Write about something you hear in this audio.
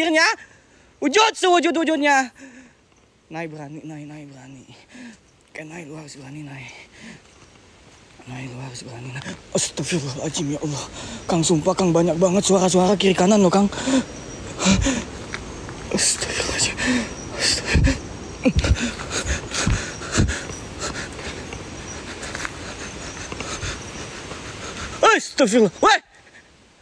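Footsteps crunch on a dirt path strewn with leaves.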